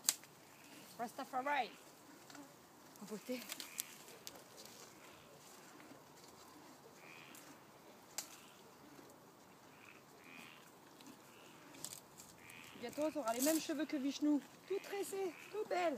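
Dry reeds rustle and crackle.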